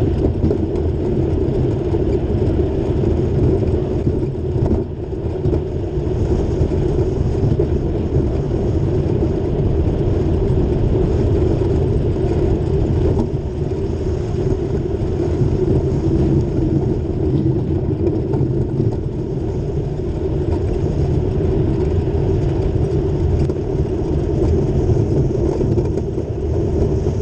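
Wheels rumble on a rough road surface throughout.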